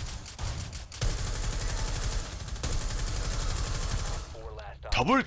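A rifle fires rapid bursts of gunshots nearby.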